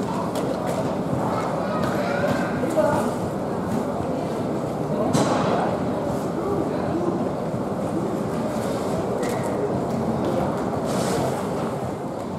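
Suitcases thump as they drop onto a conveyor belt.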